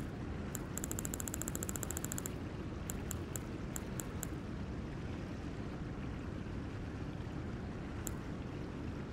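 Soft menu clicks tick quickly as a selection scrolls through a list.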